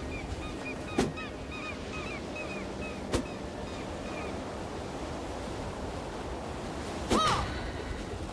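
A weapon strikes with a few sharp, sudden hits.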